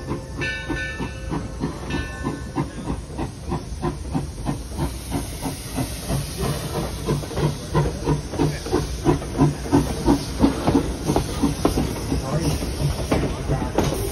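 A steam locomotive chuffs in quick, heavy puffs as it pulls in.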